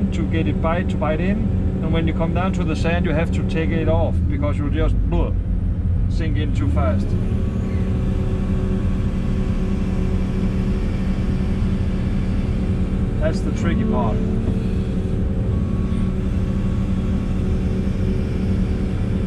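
An excavator engine drones steadily inside a cab.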